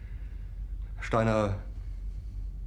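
A man speaks in a low, hesitant voice.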